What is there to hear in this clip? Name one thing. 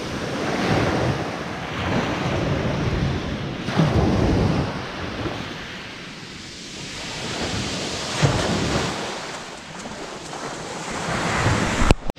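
Waves wash up onto a shingle shore and draw back over the pebbles.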